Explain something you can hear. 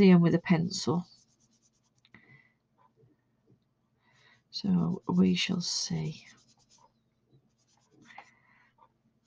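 A pastel stick scrapes softly across paper.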